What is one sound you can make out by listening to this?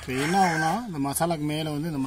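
A metal strainer knocks against a metal bowl.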